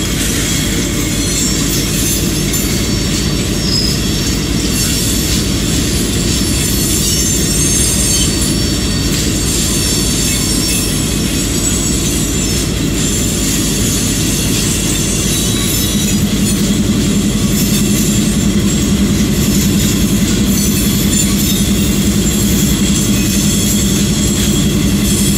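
Steel wheels clatter and roll along the rails.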